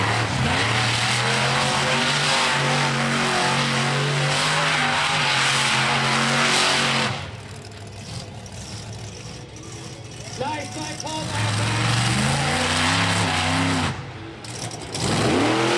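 A monster truck engine roars loudly at high revs.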